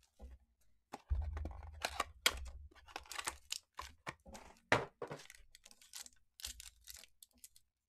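Cards rustle and flick.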